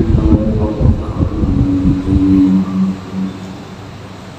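A crowd of men chants together in unison, echoing in a large hall.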